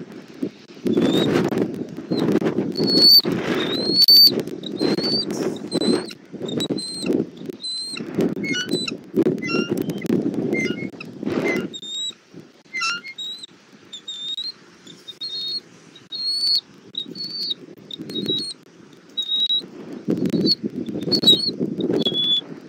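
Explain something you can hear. An eagle chirps in high, thin, repeated calls.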